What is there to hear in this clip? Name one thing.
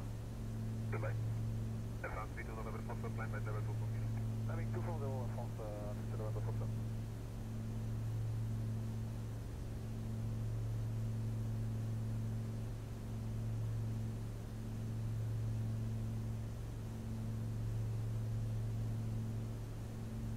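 A single-engine piston aircraft drones in cruise, heard from the cockpit.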